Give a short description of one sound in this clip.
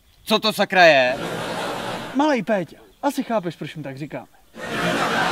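A young man speaks loudly with animation nearby.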